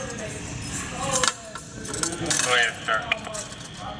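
Keys jingle as a handcuff is unlocked.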